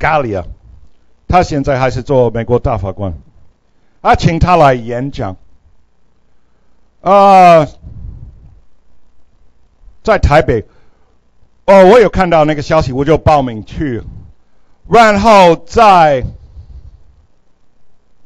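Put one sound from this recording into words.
An older man speaks with animation through a microphone, in short bursts with pauses.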